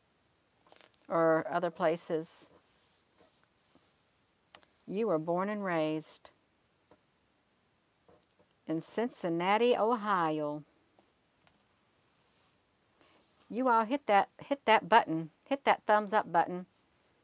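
A middle-aged woman speaks calmly and closely into a headset microphone, in short bursts with pauses.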